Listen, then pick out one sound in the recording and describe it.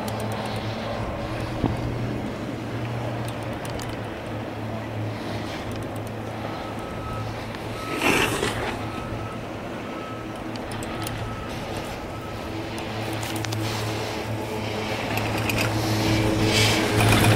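A chairlift hums and rattles steadily as it moves.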